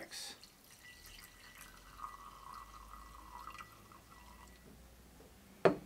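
Coffee pours softly from a glass carafe into a cup.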